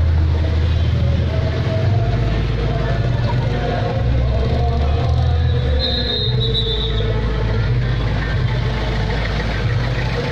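Car engines hum as vehicles drive past.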